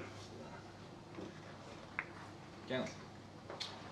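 A cue tip strikes a billiard ball.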